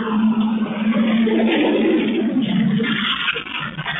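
A heavy truck rumbles past.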